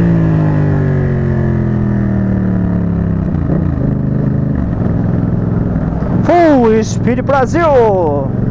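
A motorcycle engine runs close by, its pitch falling as it slows.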